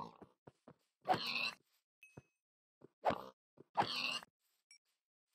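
A pig squeals sharply in pain, twice.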